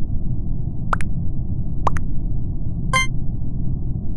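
Short game interface clicks and chimes sound.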